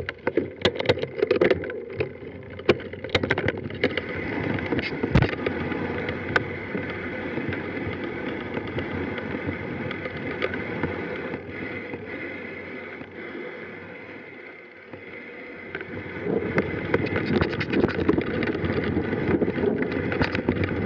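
A mountain bike rattles and clatters over rough ground.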